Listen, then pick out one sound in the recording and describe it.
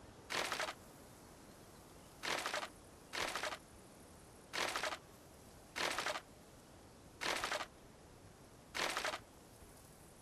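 Wooden pieces are set in place with short, sharp thuds, over and over.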